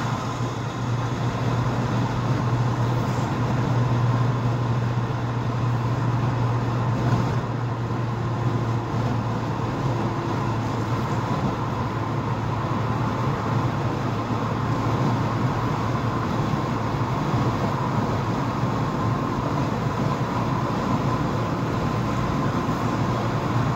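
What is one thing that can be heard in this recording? Tyres roll on the road surface with a steady rush.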